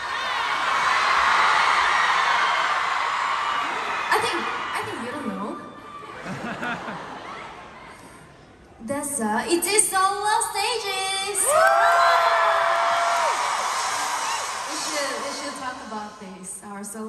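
A crowd cheers and screams loudly in a large arena.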